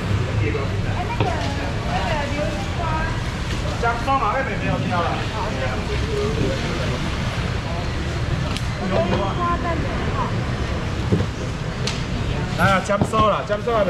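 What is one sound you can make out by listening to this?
A busy crowd murmurs and chatters all around.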